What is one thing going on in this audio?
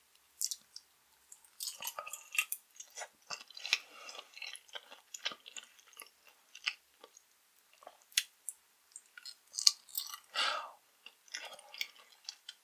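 A woman chews and smacks wetly close to a microphone.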